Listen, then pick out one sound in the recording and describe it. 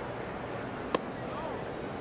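A baseball pops into a catcher's mitt.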